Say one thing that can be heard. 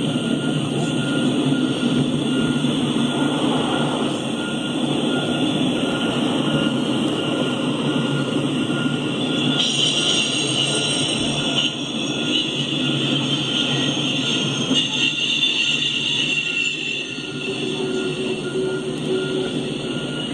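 A long freight train rumbles past close by, its wheels clattering steadily on the rails.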